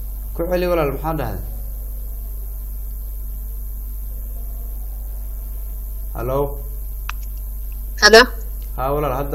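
A man speaks calmly in short bursts with pauses.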